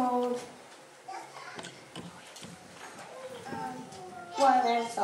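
Young children sing together in a small room with some echo.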